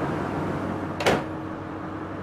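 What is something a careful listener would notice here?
A door shuts with a sharp thud.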